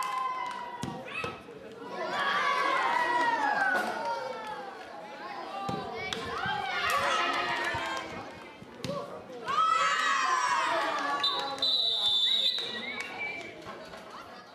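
Children shout and cheer loudly outdoors.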